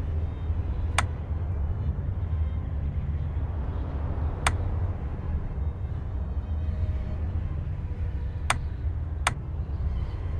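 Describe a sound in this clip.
Short electronic blips sound as a menu cursor moves.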